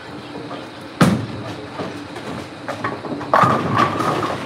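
A bowling ball thuds onto the lane and rolls.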